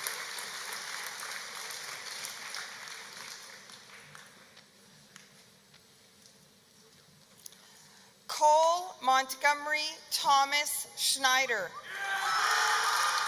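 A crowd applauds in a large echoing hall.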